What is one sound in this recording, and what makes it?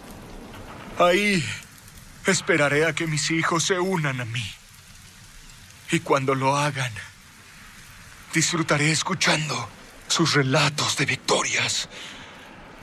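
An elderly man speaks slowly and hoarsely, close by.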